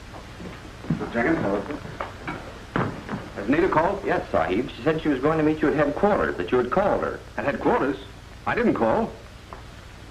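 Two men talk with each other at close range, heard through an old film soundtrack.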